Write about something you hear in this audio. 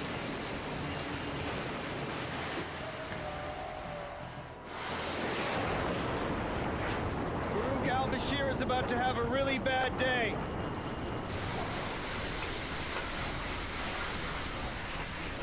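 Strong wind roars across open water.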